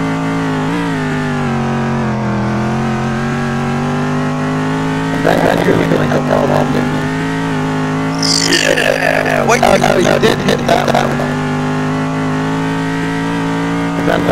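A racing car engine hums steadily at high revs, its pitch shifting slightly as it changes gear.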